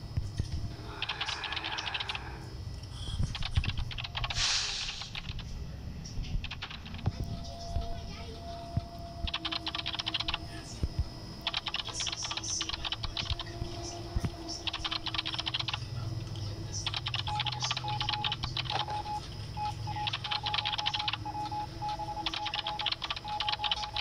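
A machine clatters in quick bursts of typing-like clicks.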